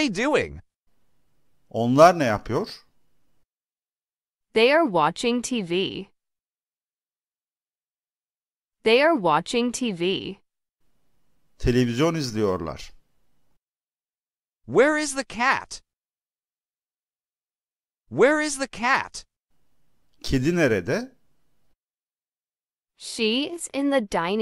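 A woman speaks slowly and clearly, in short phrases with long pauses between them.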